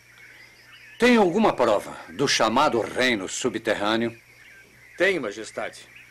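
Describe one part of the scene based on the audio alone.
A middle-aged man speaks sternly, close by.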